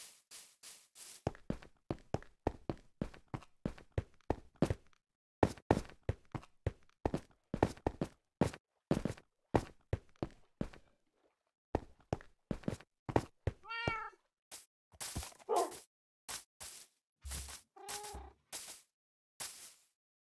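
Footsteps tread quickly over stone and grass.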